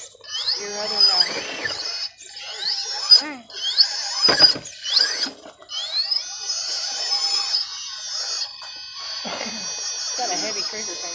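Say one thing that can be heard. A small electric motor whines, rising and falling in pitch in short bursts.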